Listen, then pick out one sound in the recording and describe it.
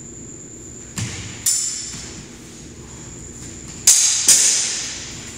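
Practice swords clash with sharp clacks that ring in an echoing hall.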